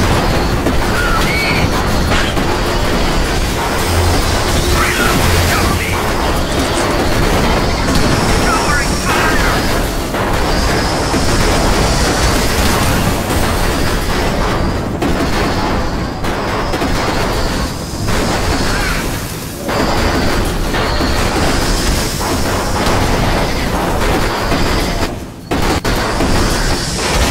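Guns fire in rapid, steady bursts.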